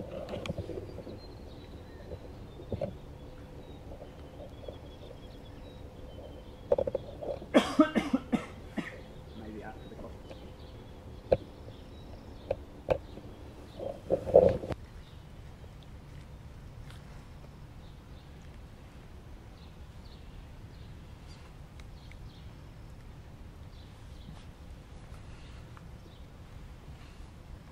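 Wind blows softly across open country.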